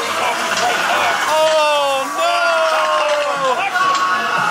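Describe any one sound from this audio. A man growls and screams nearby.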